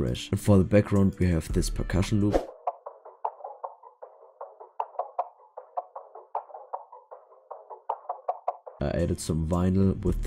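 An electronic dance track plays, turning thin and muffled in the middle before the full beat comes back.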